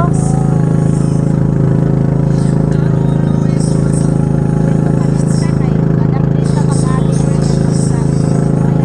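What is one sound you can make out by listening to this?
Water splashes and rushes past a boat's hull.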